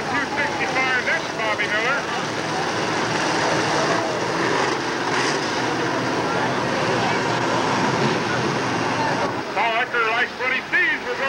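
Race car engines roar around a track.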